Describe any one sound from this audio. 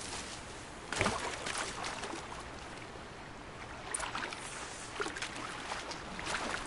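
Water splashes as someone wades and swims through it.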